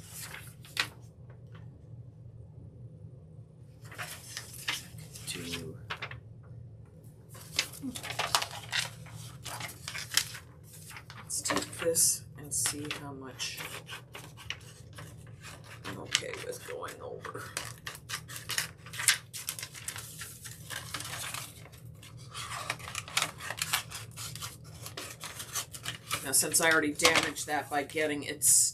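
Paper rustles and crinkles as it is rolled and handled.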